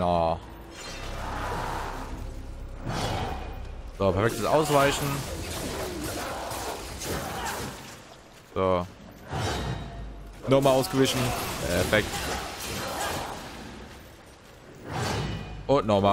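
Sword blows and magic effects clash loudly in a game fight.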